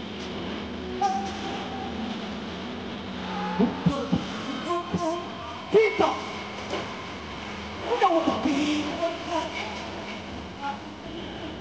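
A young man talks with animation through a microphone, heard over loudspeakers.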